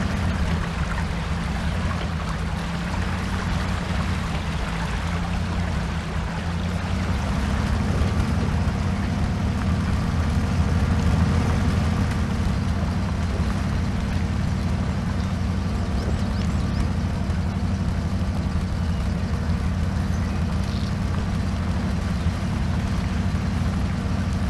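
Tyres splash through mud and water.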